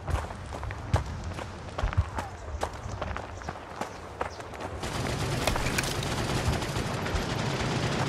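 Gunshots crack sharply in scattered bursts.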